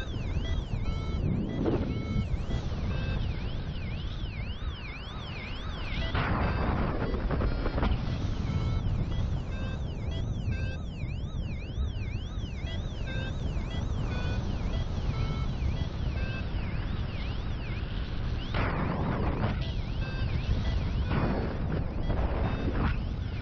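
Wind rushes steadily past, buffeting loudly in gusts.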